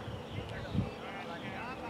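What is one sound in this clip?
A cricket bat knocks a ball once.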